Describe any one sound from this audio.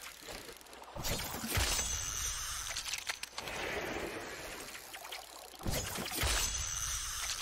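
A spear splashes into water.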